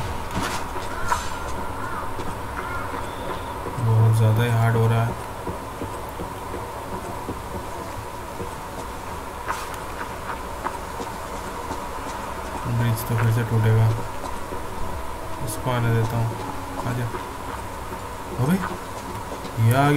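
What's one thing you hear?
Footsteps crunch on gravel and wooden planks.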